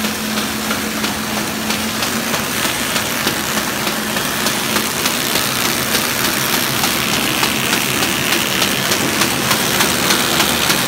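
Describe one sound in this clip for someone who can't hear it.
A paper machine hums and rattles steadily.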